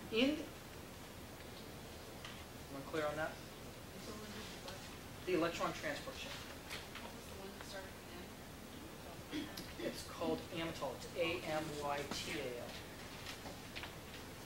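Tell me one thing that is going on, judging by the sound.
A man speaks calmly and a bit distant, pausing now and then.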